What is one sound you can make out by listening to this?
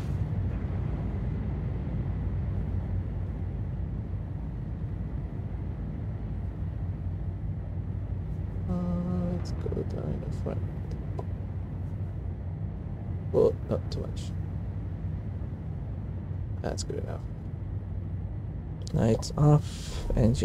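A deep engine hums steadily as a spacecraft hovers.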